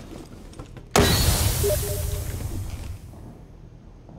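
A smoke canister bursts and hisses loudly, then fades.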